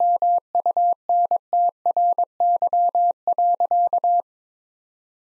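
A telegraph key taps out Morse code as a steady beeping tone in quick dots and dashes.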